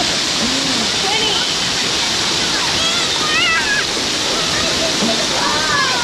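A young girl splashes through shallow water.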